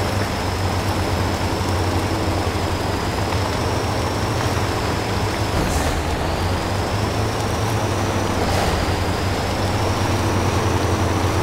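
A truck's tyres churn through mud.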